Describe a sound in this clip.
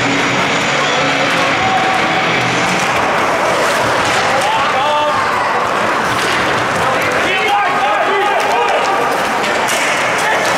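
Hockey sticks clack against the puck and ice.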